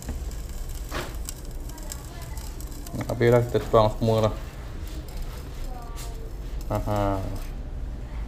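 A plastic bottle taps and clicks against a metal pot.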